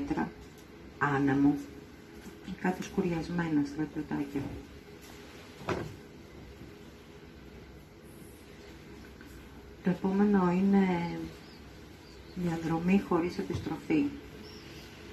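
A middle-aged woman sings slowly into a microphone, with pauses between phrases.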